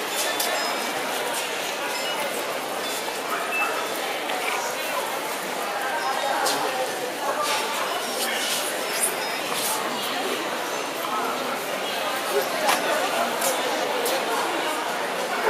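Many people chatter in the background of a large echoing hall.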